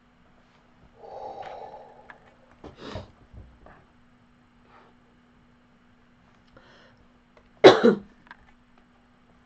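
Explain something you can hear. A woman speaks calmly into a close microphone, in short bursts.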